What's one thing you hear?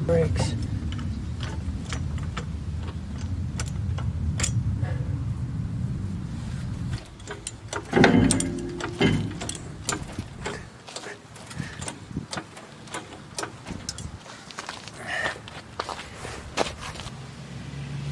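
Metal parts clink and clatter under a man's hands.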